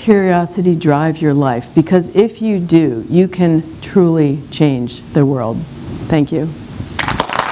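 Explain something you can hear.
A middle-aged woman speaks with animation through a microphone.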